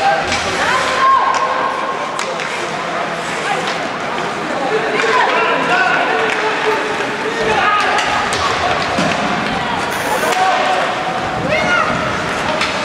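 Skates scrape and hiss on ice in a large echoing arena.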